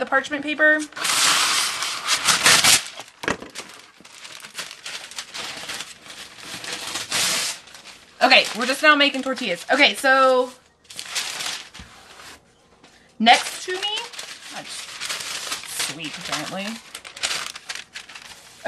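Paper crinkles and rustles as it is unrolled and handled.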